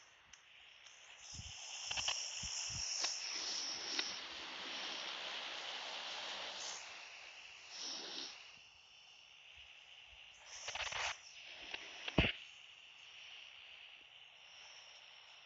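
A propeller plane drones overhead.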